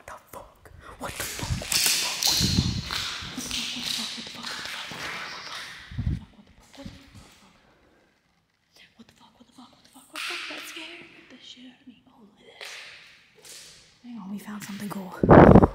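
A young woman speaks close up with animation, whispering and exclaiming.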